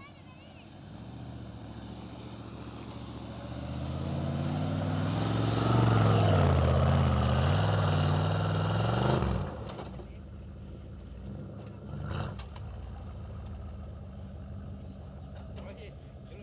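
A pickup truck engine rumbles closer, revs hard and strains up a sandy slope.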